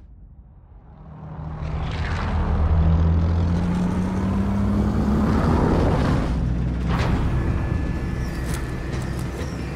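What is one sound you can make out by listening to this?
A large jet plane roars loudly as it flies close overhead.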